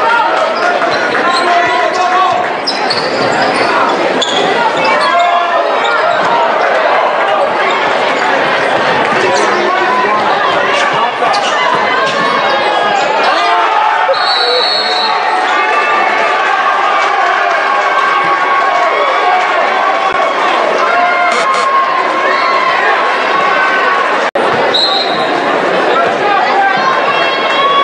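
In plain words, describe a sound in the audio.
A crowd in a large echoing gym cheers and chatters loudly.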